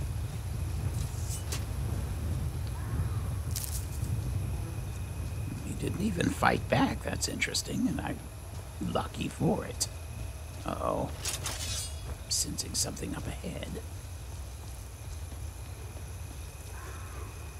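Footsteps crunch on dirt and gravel.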